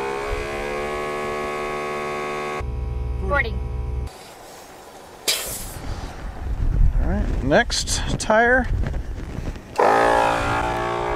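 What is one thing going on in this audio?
An air compressor hums steadily.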